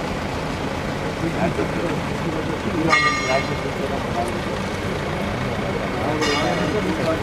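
A crowd of men talks in a low murmur outdoors.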